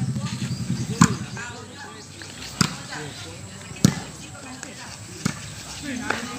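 A ball is struck with a sharp thump.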